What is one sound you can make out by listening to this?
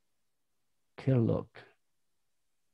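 A man speaks briefly into a microphone, close by.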